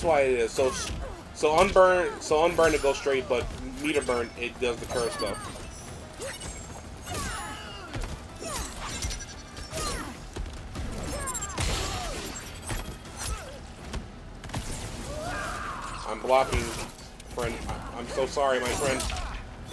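Punches and kicks land with sharp thuds and whooshes.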